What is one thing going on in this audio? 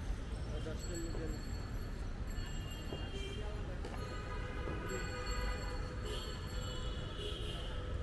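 A spoon stirs puffed rice in a plastic mug.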